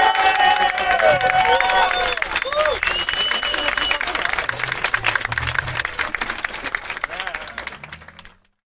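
A crowd claps and cheers nearby.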